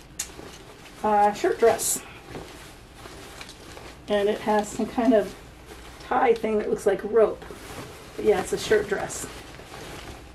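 An older woman talks calmly and close by.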